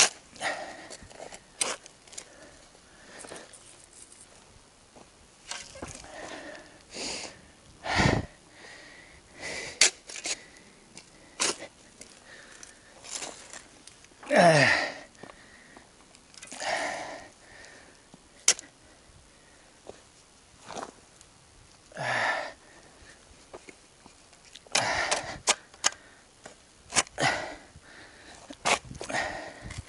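A metal shovel blade clinks against stones.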